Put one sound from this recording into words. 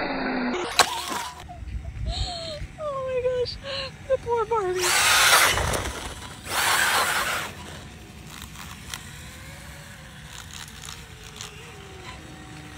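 A small toy motorcycle's electric motor whines, rising and falling in pitch as it speeds up and slows down.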